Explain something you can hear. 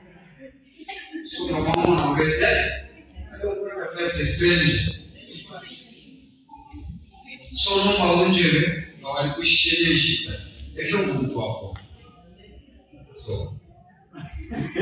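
A man preaches loudly and with animation through a microphone and loudspeakers in an echoing hall.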